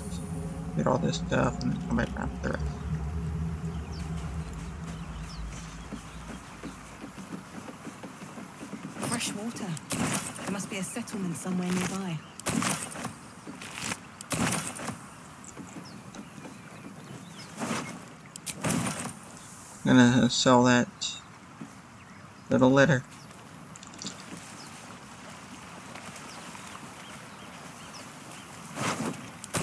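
Waves lap gently against a rocky shore.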